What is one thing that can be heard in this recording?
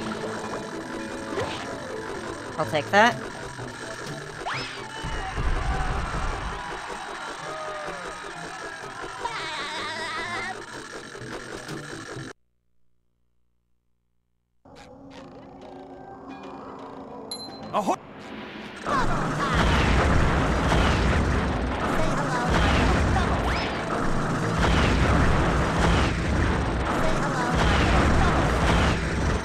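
Playful music plays from a video game.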